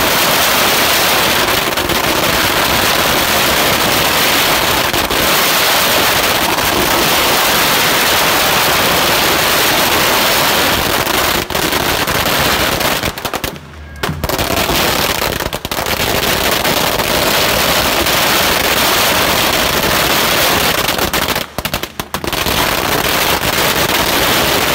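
Firecrackers crackle and pop in a dense, rapid barrage close by.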